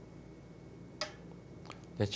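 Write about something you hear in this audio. A game stone clicks sharply onto a wooden board.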